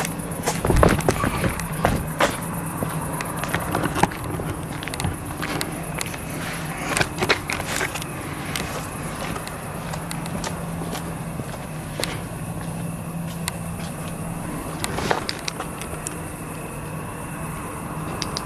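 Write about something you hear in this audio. Footsteps crunch on a path.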